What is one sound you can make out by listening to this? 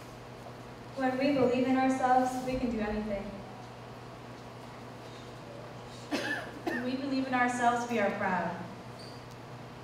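A young woman speaks into a microphone, heard through loudspeakers in a large hall.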